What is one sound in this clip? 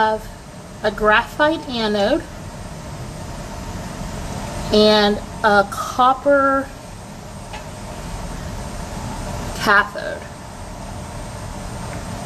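Liquid pours from a glass beaker into another glass.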